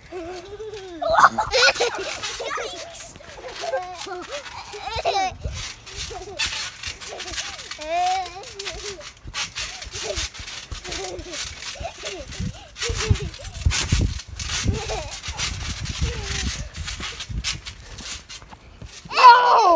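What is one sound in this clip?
A young girl shrieks and laughs.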